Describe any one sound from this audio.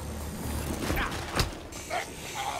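A heavy punch lands with a thud.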